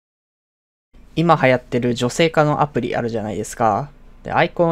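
A young woman speaks with animation, close up.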